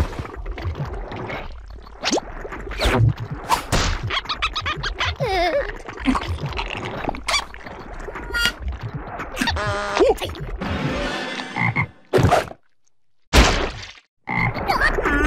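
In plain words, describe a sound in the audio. A small cartoon creature squeals and jabbers in a high, silly voice.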